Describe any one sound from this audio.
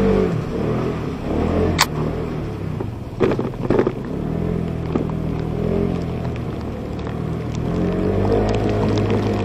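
A motor scooter engine hums steadily up close.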